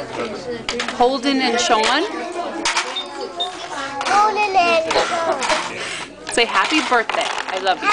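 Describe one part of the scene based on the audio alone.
A young child talks close by in a high, lively voice.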